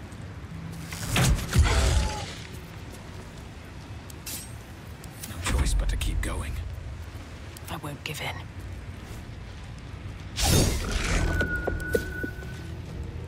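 Magical blasts whoosh and boom in bursts.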